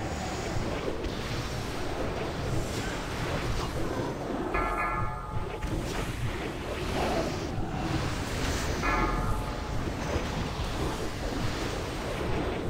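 Magic spells crackle and boom in a busy battle.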